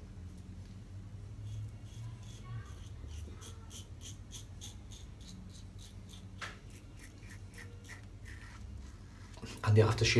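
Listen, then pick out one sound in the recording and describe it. A razor scrapes through stubble in short, rapid strokes.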